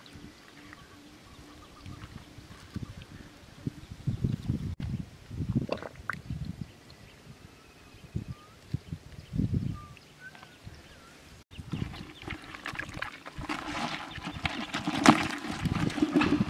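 Hands dig and scrape in wet mud.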